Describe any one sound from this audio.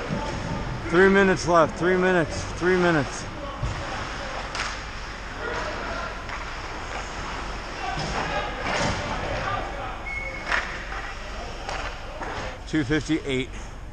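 Players shout loudly across the ice.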